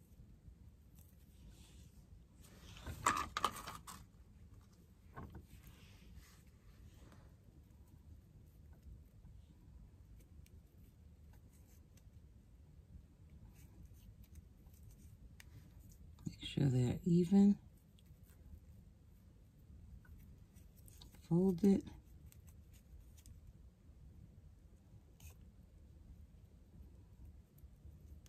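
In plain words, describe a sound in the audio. Hands rustle softly close by.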